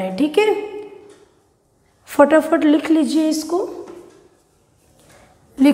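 A young woman speaks clearly in a calm, explaining tone, with short pauses.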